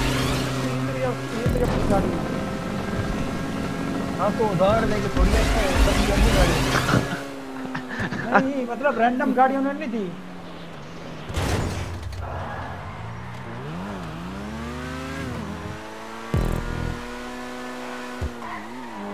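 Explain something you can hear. A car engine revs and roars, rising and falling in pitch.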